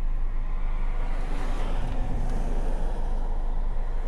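Traffic rumbles by on a street.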